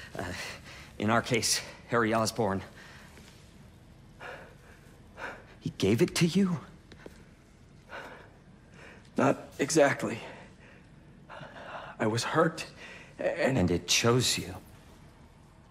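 A young man speaks earnestly and with feeling, close by.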